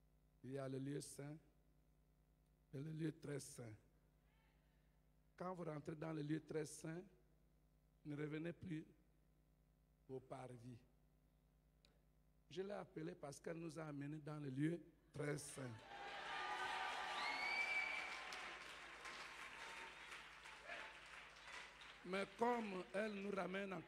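An elderly man speaks with animation through a microphone, in short phrases with pauses.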